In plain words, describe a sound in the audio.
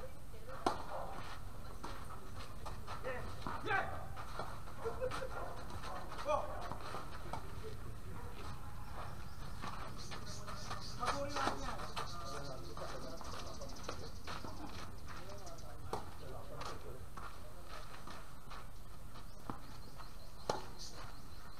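Tennis balls are struck with rackets in sharp pops.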